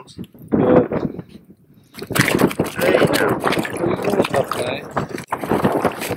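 A fish splashes into water through a hole in the ice.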